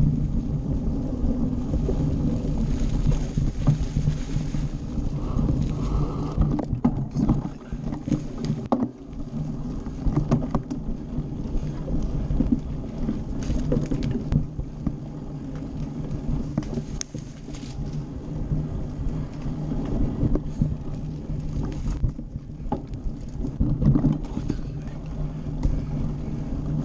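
A bicycle rattles and clicks on the rough ground.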